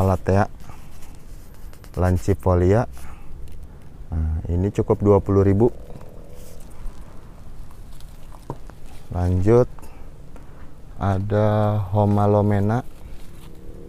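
A young man talks calmly and close by, in short bursts.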